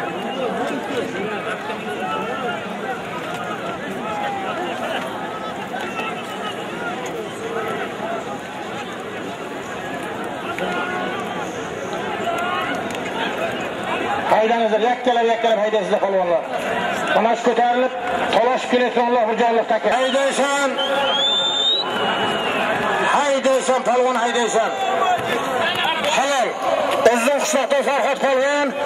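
A large crowd of men shouts and murmurs outdoors.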